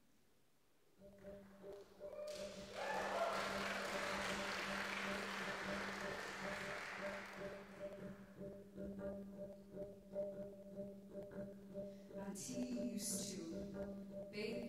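A double bass plays low bowed notes.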